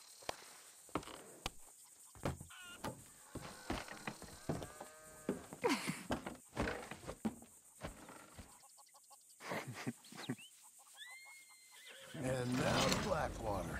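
Horse hooves clop on a dirt track.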